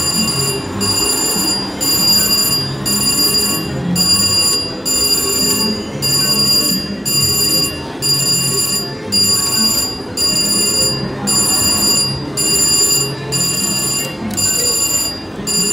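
A slot machine plays steady, bright electronic chimes in repeating bursts.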